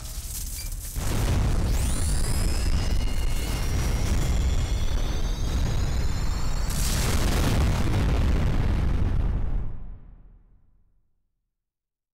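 A loud explosion booms and rumbles, then fades away.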